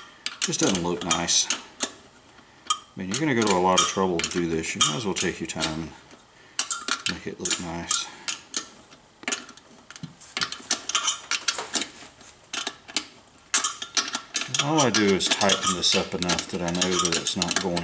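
A metal tool clicks and scrapes against wire wheel spokes.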